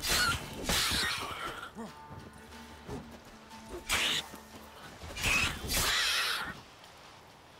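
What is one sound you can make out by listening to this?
A sword swishes and clashes in a fight.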